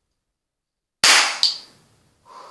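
A cap gun fires a sharp bang close by.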